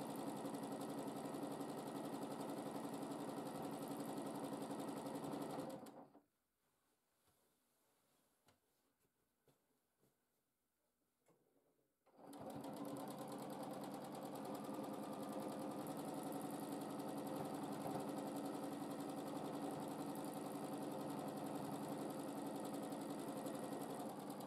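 A sewing machine runs fast with a steady whirring hum, pausing briefly before starting up again.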